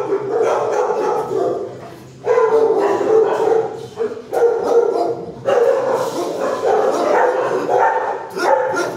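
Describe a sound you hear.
A dog howls and whines loudly in an echoing room.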